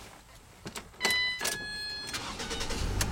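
A car's dashboard warning chime beeps.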